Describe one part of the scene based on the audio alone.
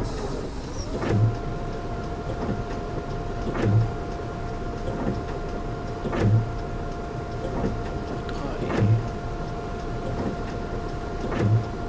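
Windscreen wipers sweep and thump back and forth at a steady pace.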